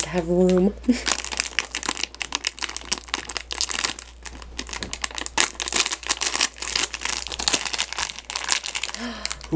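A plastic wrapper crinkles and rustles in hands.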